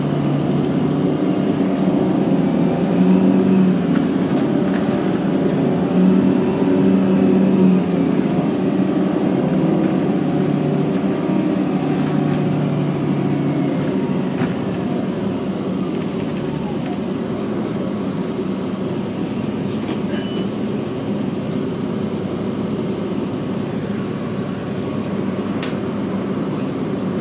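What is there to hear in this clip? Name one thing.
A bus engine hums and drones steadily from inside the bus.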